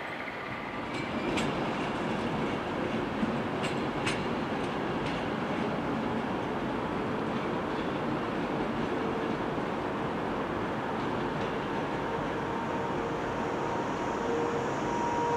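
A train rumbles slowly over the tracks.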